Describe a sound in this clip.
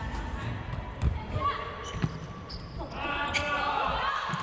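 A volleyball is struck with sharp slaps in an echoing hall.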